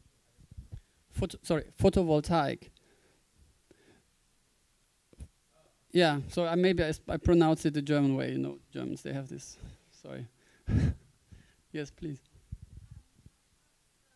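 A man speaks through a microphone in a large room, with pauses.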